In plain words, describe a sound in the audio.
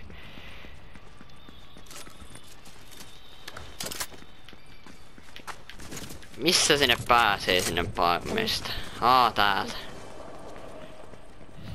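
Footsteps run over hard ground.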